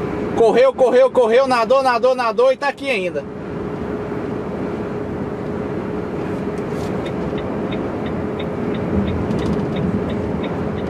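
A truck engine hums steadily.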